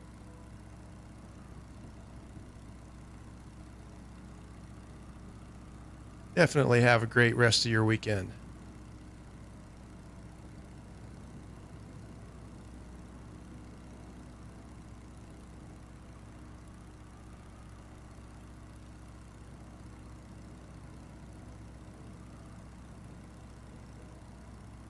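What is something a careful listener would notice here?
A propeller engine drones steadily.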